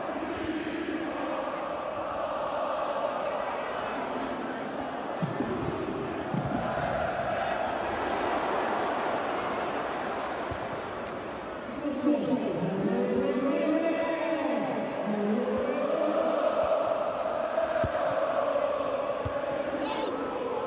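A large crowd chants and sings in a stadium.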